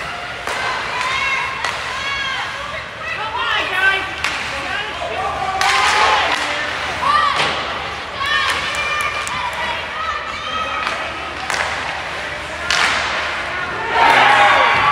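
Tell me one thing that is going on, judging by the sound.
Spectators shout and cheer nearby in a large echoing rink.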